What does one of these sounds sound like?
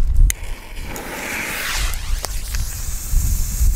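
A fuse fizzes and hisses as it burns.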